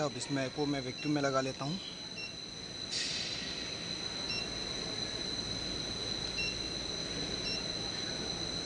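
An electronic machine gives short beeps as its buttons are pressed.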